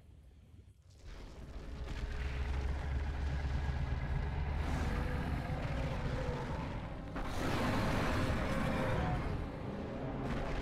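A huge beast growls and snarls deeply, close by.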